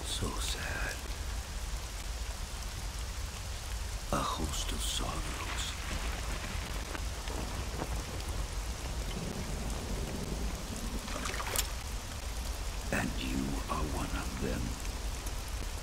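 A man speaks slowly and gravely in a low voice.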